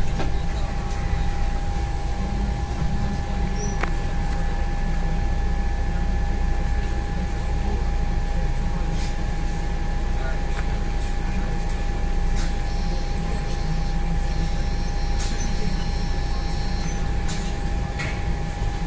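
A bus engine rumbles low and steady while driving along a road.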